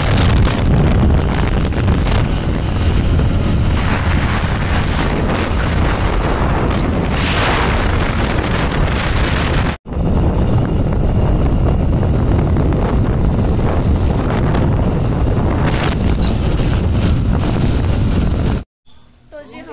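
Strong wind roars loudly past while riding fast along a road.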